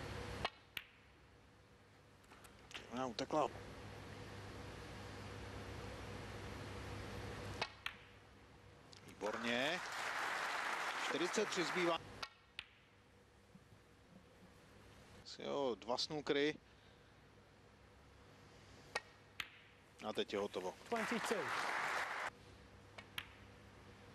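Snooker balls click sharply against each other.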